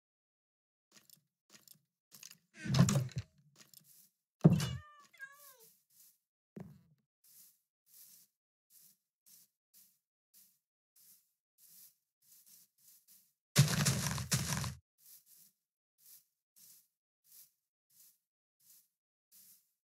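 Footsteps thud steadily on grass and dirt.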